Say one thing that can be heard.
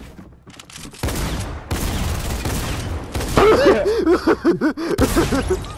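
Gunshots fire rapidly and loudly.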